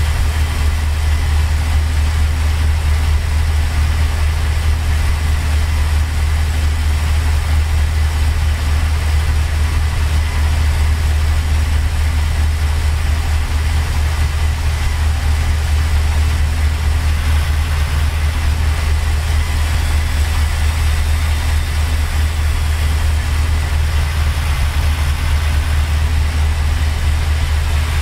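A truck's diesel engine drones low and steady.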